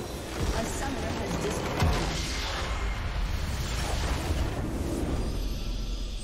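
Game spell effects whoosh and crash loudly.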